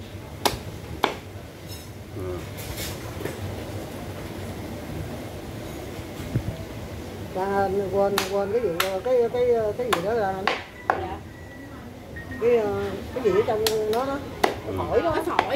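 A heavy knife chops through meat and bone onto a wooden board.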